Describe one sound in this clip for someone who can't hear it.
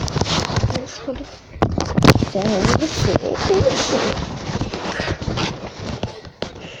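A young boy talks with animation close to a phone microphone.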